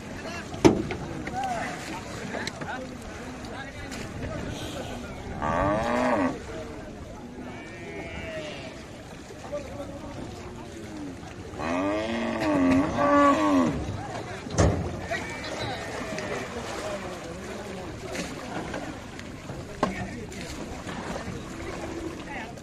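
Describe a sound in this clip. Water splashes and sloshes as buffalo swim.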